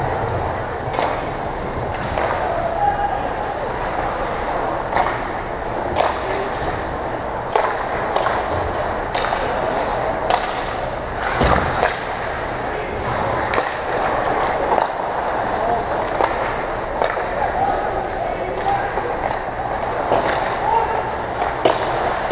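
Hockey sticks and pucks clack sharply against the ice and boards.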